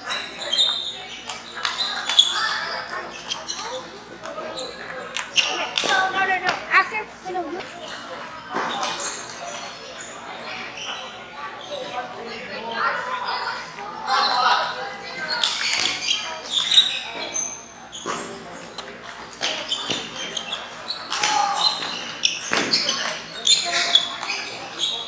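A ping pong ball clicks back and forth on paddles and a table.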